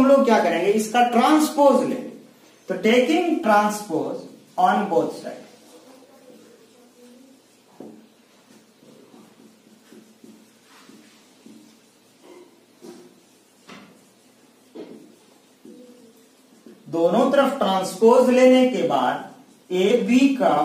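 A young man speaks calmly and clearly, as if teaching, close by.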